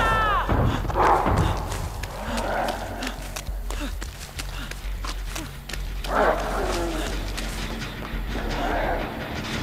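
Footsteps run through grass and over wooden boards.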